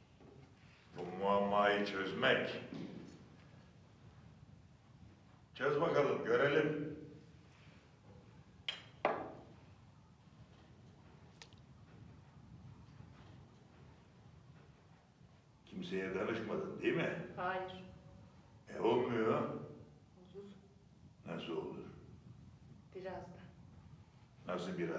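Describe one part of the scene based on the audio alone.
A man speaks calmly nearby.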